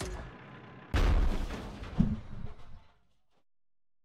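A man talks into a nearby microphone with animation.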